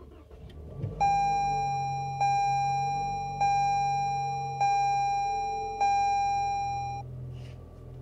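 A car's warning chime dings five times at an even pace.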